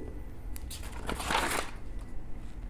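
A page of paper turns with a rustle.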